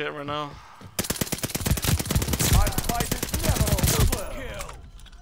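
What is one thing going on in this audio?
A silenced submachine gun fires in a long burst.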